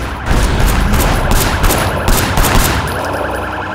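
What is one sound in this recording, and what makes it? Gunshots ring out in rapid bursts.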